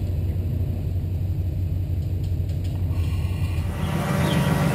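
An off-road vehicle's engine idles with a low rumble.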